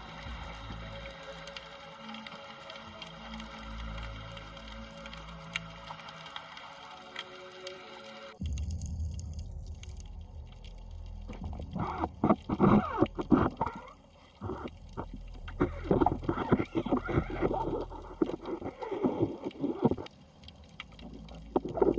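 Water swirls and rumbles, heard muffled underwater.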